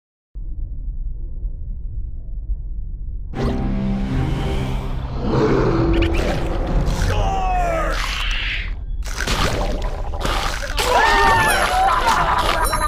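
Game music plays with a low rumbling beat.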